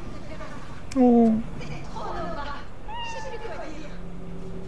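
A cat meows softly.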